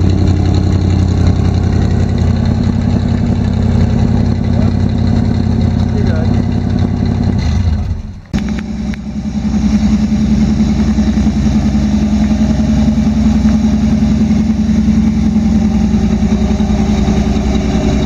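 A truck engine idles with a deep, steady rumble close by.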